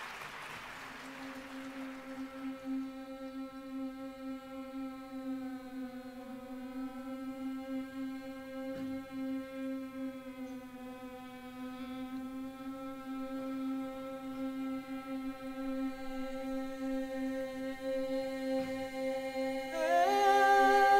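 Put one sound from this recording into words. A choir of young women and men sings a long, sustained chord in a large echoing hall.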